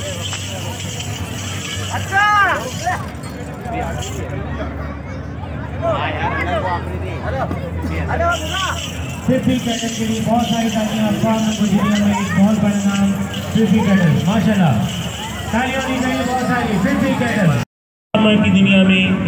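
A crowd of men and boys talk and shout close by outdoors.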